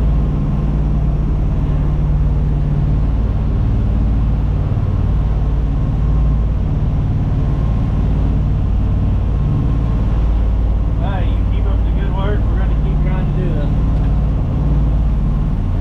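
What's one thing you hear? A boat engine drones loudly and steadily.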